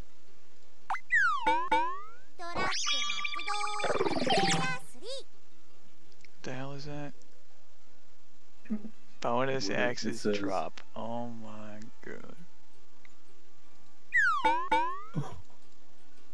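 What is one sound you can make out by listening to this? A game plays a quick burst of bright, swooping chime tones.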